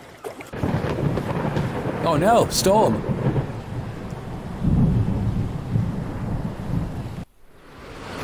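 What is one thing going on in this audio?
A young man talks through a microphone.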